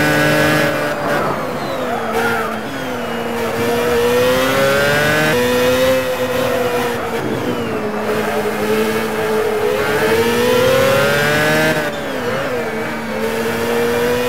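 An open-wheel racing car engine eases off and drops in pitch for corners.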